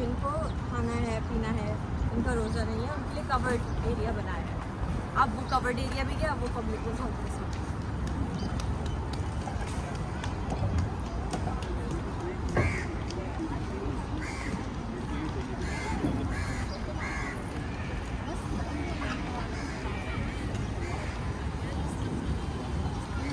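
Men and women chatter and call out nearby in an open outdoor space.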